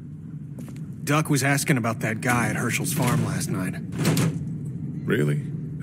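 A man speaks calmly in a drawling voice.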